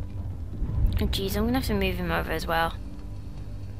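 A young woman exclaims with a rising and falling voice, close to a microphone.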